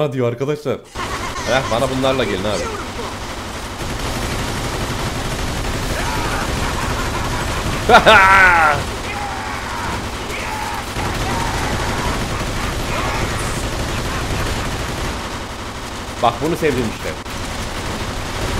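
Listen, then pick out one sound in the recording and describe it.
Submachine guns fire in rapid bursts.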